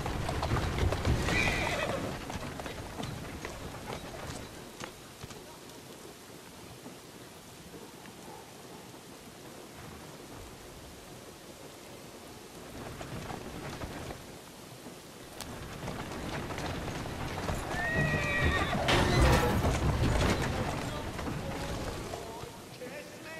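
Horse hooves clatter on wet cobblestones.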